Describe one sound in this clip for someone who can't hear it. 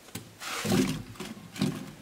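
Vegetable pieces shift and knock softly in a metal roasting pan.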